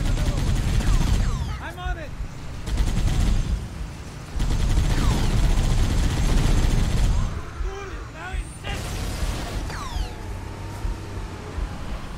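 A vehicle engine rumbles.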